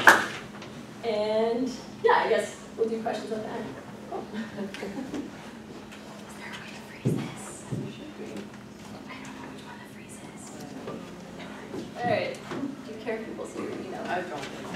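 A woman speaks in a large room, heard from a distance.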